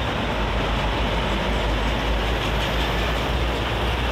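A large truck roars past.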